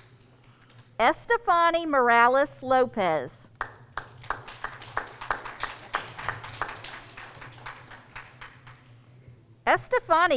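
A woman speaks clearly through a microphone.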